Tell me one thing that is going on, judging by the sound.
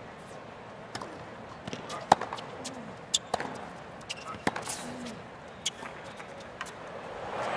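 Tennis rackets strike a ball back and forth.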